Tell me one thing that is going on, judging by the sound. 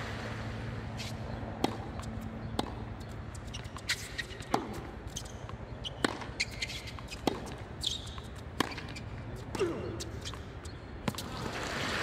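Tennis rackets strike a ball back and forth in a quick rally.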